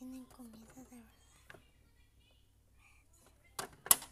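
A refrigerator door is pulled open.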